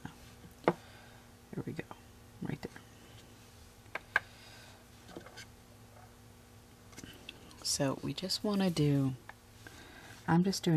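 A dotting tool taps softly on a painted surface.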